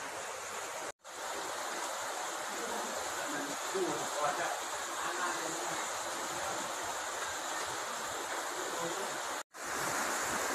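Floodwater trickles and flows softly.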